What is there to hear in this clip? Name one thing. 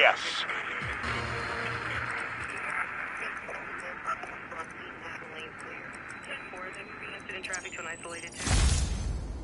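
A wavering electronic tone hums steadily.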